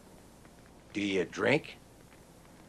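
An older man speaks up briefly close by.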